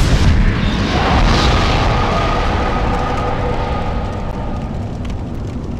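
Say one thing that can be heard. A bright, shimmering magical chime rings out and slowly fades.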